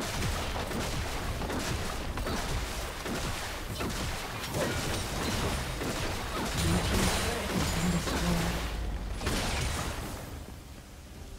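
Video game combat effects burst, clash and crackle rapidly.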